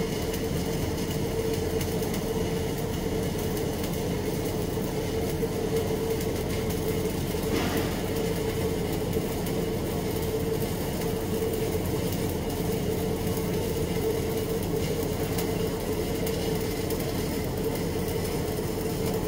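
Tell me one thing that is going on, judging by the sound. A welding arc crackles and buzzes steadily close by.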